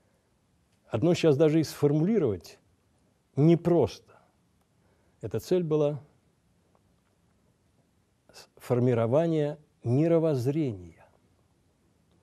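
An elderly man speaks slowly and deliberately into a microphone, with pauses between phrases.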